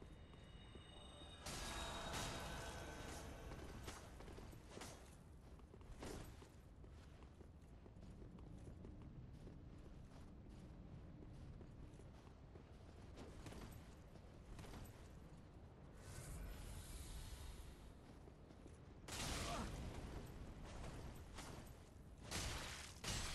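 Swords clang and slash in a fight.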